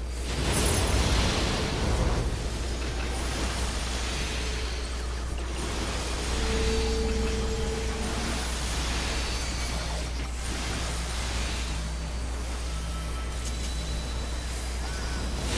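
Magic spell effects whoosh and burst in a battle.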